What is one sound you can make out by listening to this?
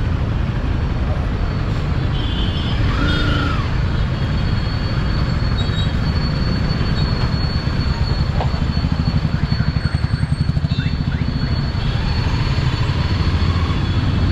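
Engines of nearby buses and cars hum in traffic.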